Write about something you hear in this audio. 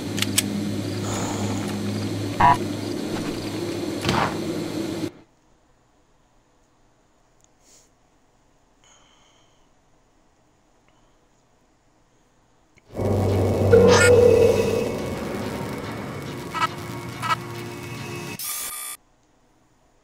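A low droning hum fills an echoing tunnel.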